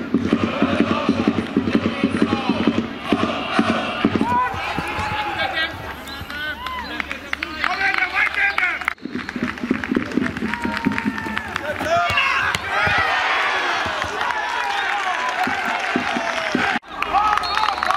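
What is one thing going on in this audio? A crowd of fans sings and cheers outdoors.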